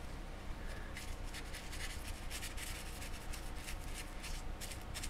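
A small brush scrapes and scratches against a rough surface.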